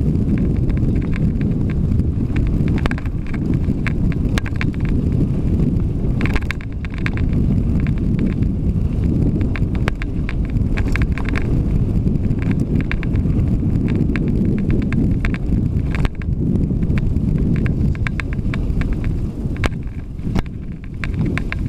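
Bicycle tyres crunch and rattle over a bumpy dirt track.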